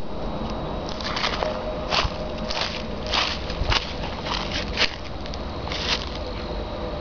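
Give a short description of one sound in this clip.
Dry leaves crunch underfoot.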